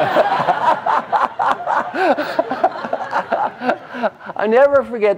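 An older man laughs heartily close by.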